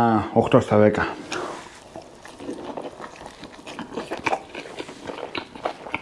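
A man chews food with crunchy, wet eating sounds.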